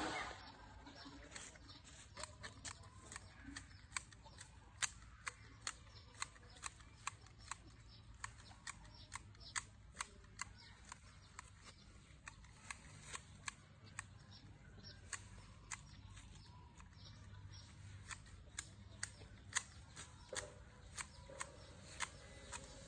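Hedge shears snip sharply again and again.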